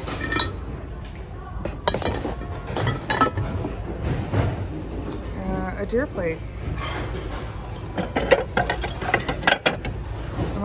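Glass and ceramic dishes clink and knock together.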